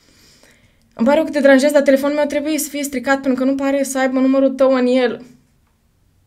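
A young woman speaks with animation close to a microphone.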